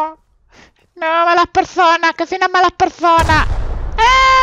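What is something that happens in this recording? A pistol fires several quick shots.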